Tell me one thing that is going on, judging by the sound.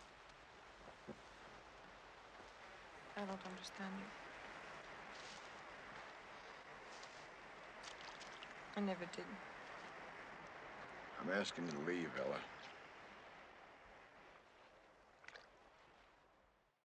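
Small waves lap gently on a shore.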